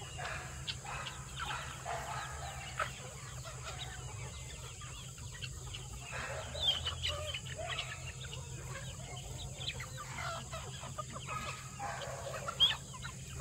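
A flock of chickens clucks and cackles all around, outdoors.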